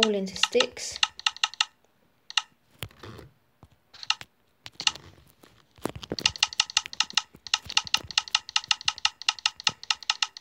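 Short game click sounds repeat in quick bursts.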